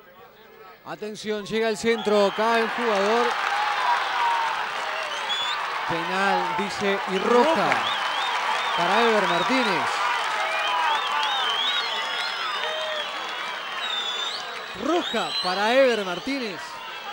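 A crowd in a stadium shouts and whistles loudly.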